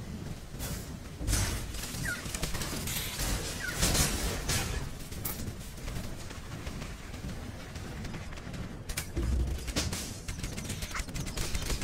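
Sword strikes and combat effects clash in a video game.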